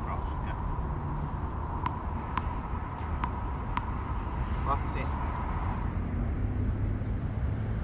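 A player bounces a ball on a hard court.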